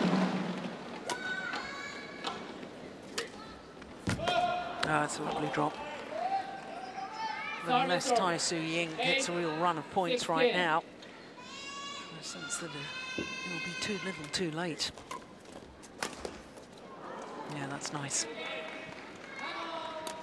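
A shuttlecock is struck sharply by rackets in a rally, in a large echoing hall.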